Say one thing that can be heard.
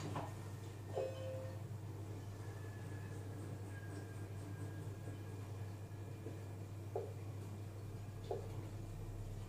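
A kitchen appliance beeps softly as its buttons are pressed.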